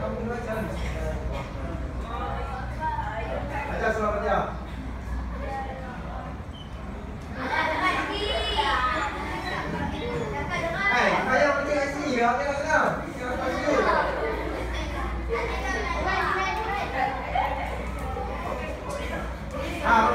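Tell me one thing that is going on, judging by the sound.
A man speaks to a class.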